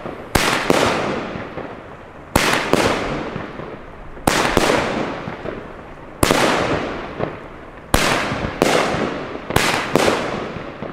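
Fireworks burst with loud booming bangs, one after another.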